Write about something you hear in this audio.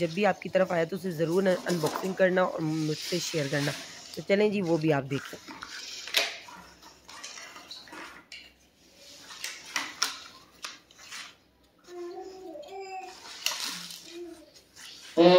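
Stiff paper rustles and crackles as hands handle it.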